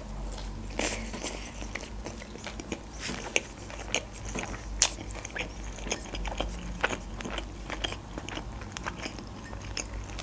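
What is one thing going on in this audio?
A woman chews food wetly and loudly close to a microphone.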